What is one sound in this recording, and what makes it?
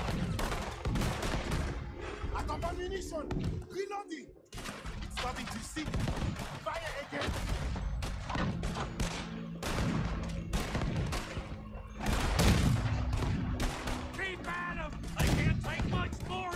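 Explosions boom and debris scatters.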